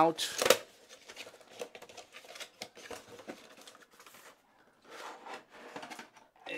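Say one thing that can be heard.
Cardboard rustles and scrapes as a box is opened by hand.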